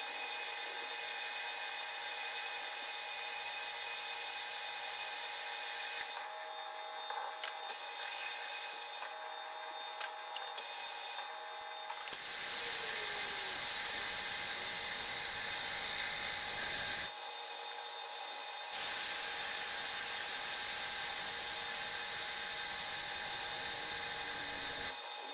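A lathe motor whirs steadily.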